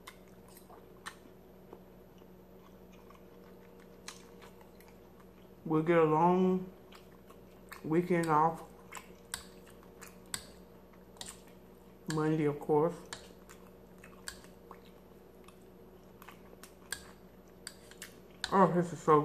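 A woman chews food with soft smacking sounds.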